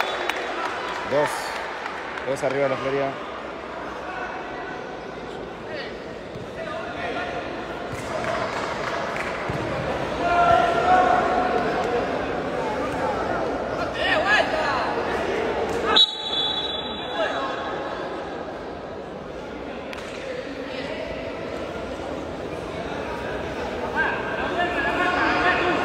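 Men shout to each other during play.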